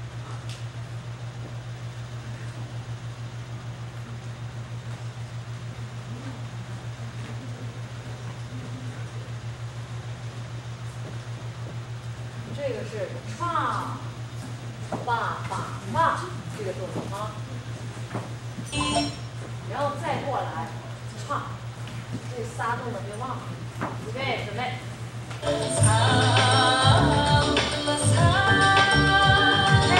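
Dancers' feet tap and slide on a wooden floor.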